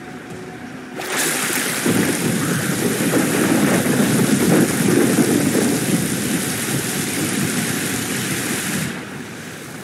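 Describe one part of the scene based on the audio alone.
Heavy rain pours down onto water.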